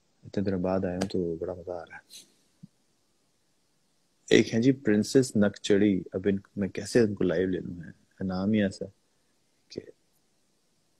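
A young man talks with animation over an online call.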